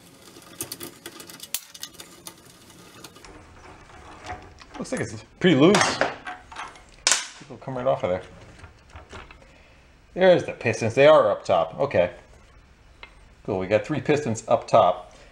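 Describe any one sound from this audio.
Metal parts clink and tap as they are handled.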